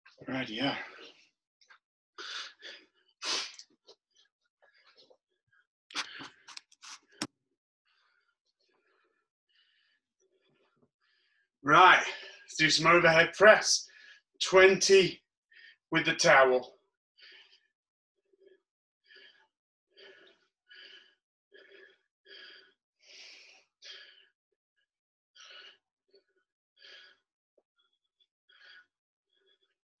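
A towel rustles and swishes.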